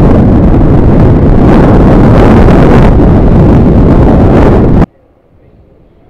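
A motorcycle engine hums.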